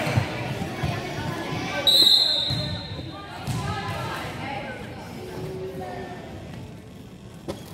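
Young girls call out to each other in an echoing gym.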